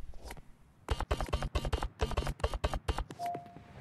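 Short electronic beeps tick in quick succession.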